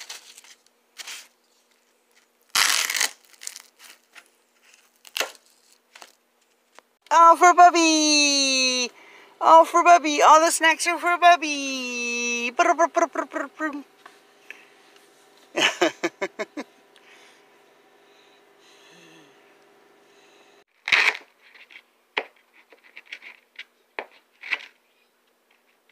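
A blade squeaks as it cuts through foam.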